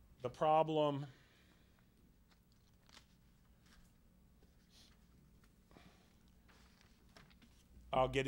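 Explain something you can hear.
Paper sheets rustle as a man handles them.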